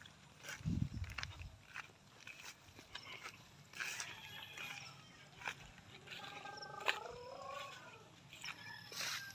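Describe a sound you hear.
A woman walks barefoot over soft soil.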